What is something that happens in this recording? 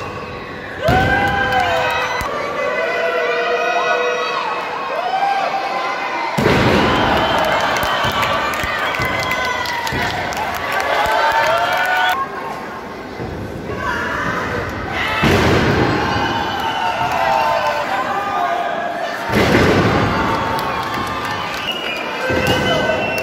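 Bodies slam onto a springy wrestling ring mat with loud thuds.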